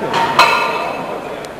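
Weight plates on a barbell clank sharply as the bar is lifted.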